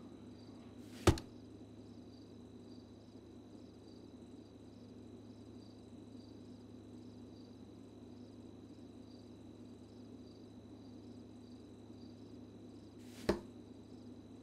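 A dart thuds into a dartboard.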